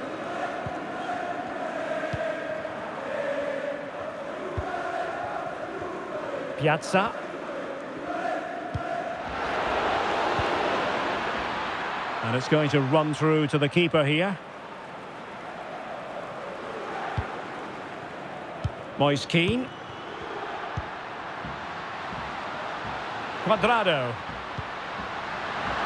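A large stadium crowd chants and roars.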